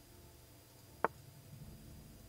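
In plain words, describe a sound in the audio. A single sharp click sounds as a chess piece is placed.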